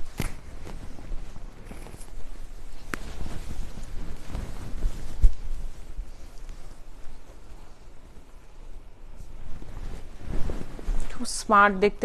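Silk fabric rustles as it is handled.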